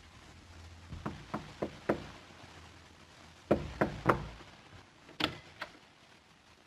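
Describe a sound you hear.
A fist knocks firmly on a wooden door several times.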